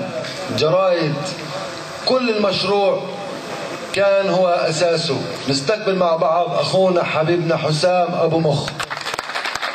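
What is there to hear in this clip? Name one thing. A young man speaks passionately into a microphone through loudspeakers.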